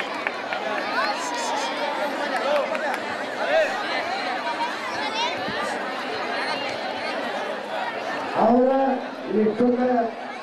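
A crowd of adults and children chatters and calls out nearby.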